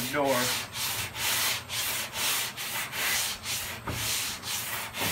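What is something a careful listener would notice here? Sandpaper scrapes back and forth over metal in quick, even strokes.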